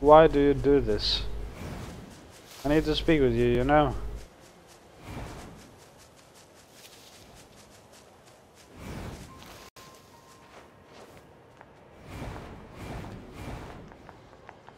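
Footsteps run through grass and over stone.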